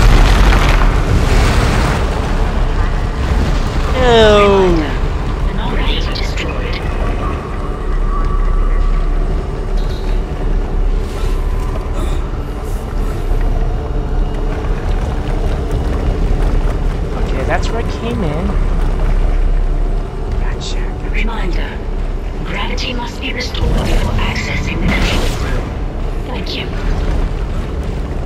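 A low mechanical hum drones steadily throughout.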